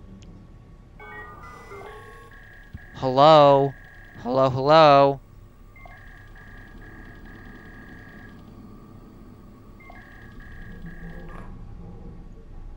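Interface beeps sound as menu buttons are clicked.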